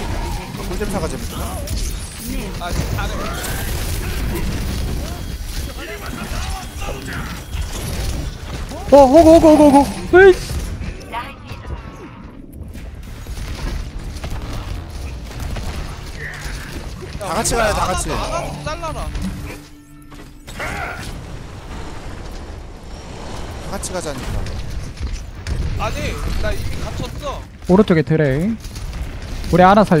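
Heavy weapon fire and impacts clatter in a video game.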